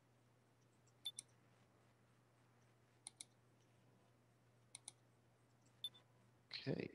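Short soft blips sound from a game menu.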